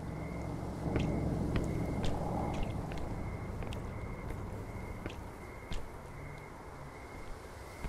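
Footsteps tread on stone paving.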